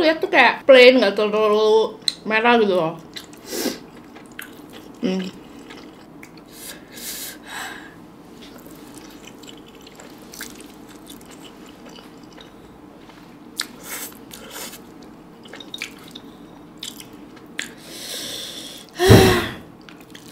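Chopsticks click against a glass bowl.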